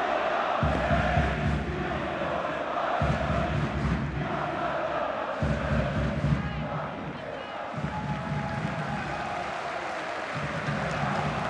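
A stadium crowd chants and murmurs steadily in the distance.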